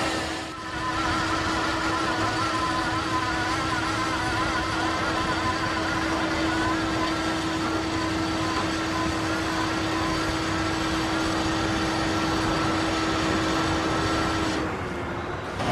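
A drilling rig's engine drones steadily.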